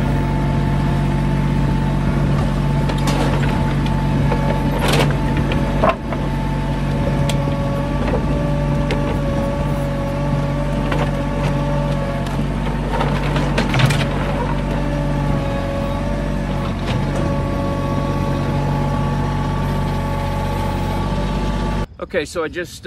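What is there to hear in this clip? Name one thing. A tractor engine runs steadily and loudly close by.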